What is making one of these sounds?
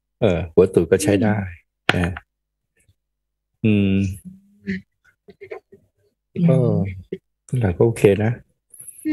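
A middle-aged man talks calmly into a microphone in short phrases.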